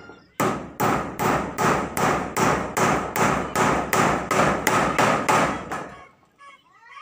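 A hammer bangs rapidly on a metal roofing sheet, ringing loudly.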